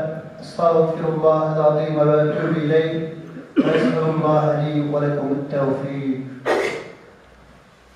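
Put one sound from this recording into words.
A man chants in a melodic voice through a microphone, echoing in a large hall.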